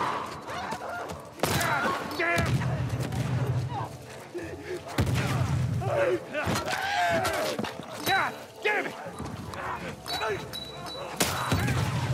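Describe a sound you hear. Monsters shriek and gurgle with rasping cries.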